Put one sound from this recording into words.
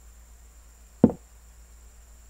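A short click sounds as a piece moves in an online chess game.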